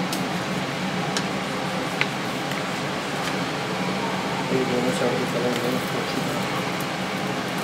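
Oil sizzles and crackles in a frying pan.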